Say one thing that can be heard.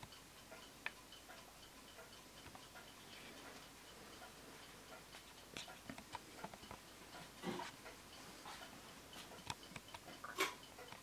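A pendulum clock ticks softly and steadily.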